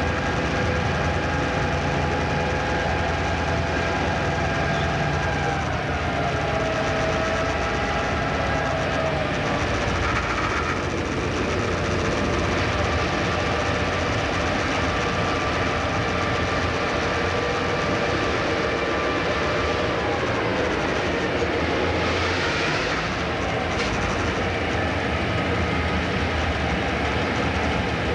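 An electric train rumbles steadily along the rails.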